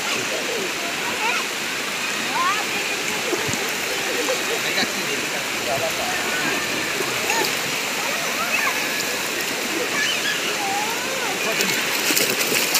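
Shallow water splashes as people wade through it.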